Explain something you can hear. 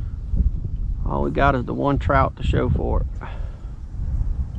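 A man speaks a few metres away outdoors.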